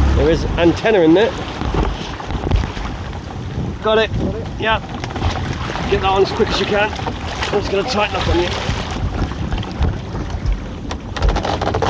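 Water splashes and streams off a crab pot hauled up out of the sea.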